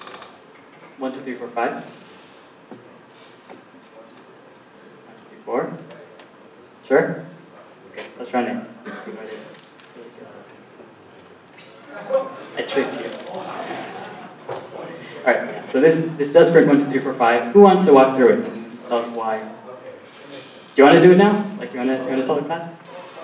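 A man lectures through a microphone in a large hall, speaking in bursts with pauses.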